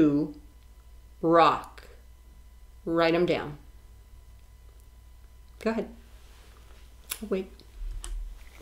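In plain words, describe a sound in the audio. A woman speaks calmly and close up, heard through a microphone.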